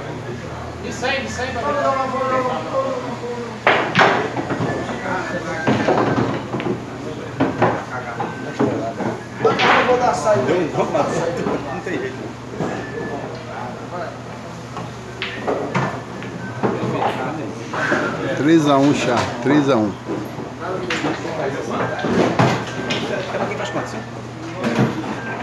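Young men talk and call out nearby.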